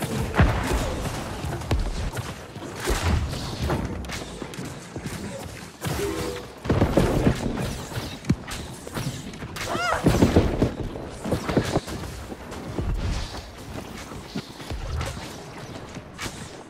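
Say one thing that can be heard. Swords and weapons clash and strike in a noisy fight.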